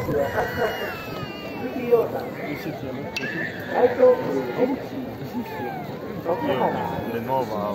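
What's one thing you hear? A crowd murmurs and chatters outdoors.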